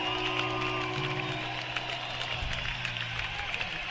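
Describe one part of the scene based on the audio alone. A large crowd cheers and whistles.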